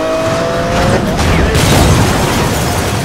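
A car crashes hard into a wall with a loud bang.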